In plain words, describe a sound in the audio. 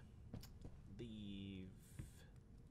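A young man speaks briefly and casually, close to a microphone.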